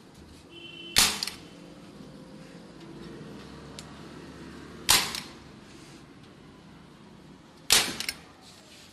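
A staple gun fires with sharp, loud snaps.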